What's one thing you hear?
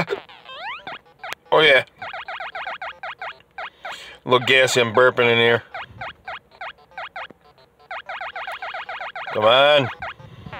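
Quick electronic game blips repeat in a steady rhythm as a small figure climbs.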